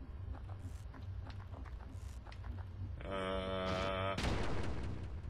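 A video game plays short electronic blips and a held buzzing tone.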